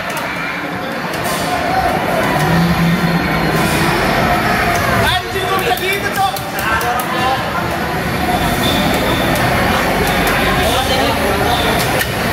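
Arcade racing games roar with engine sounds through loudspeakers.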